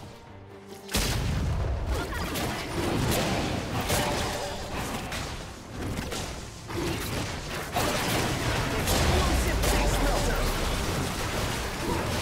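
Magical blasts and spell effects crackle and boom in a fast fight.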